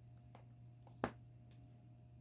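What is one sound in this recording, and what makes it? A plastic palette case clicks as it is picked up.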